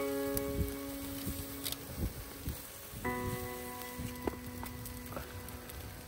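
Metal tongs clink against a grill.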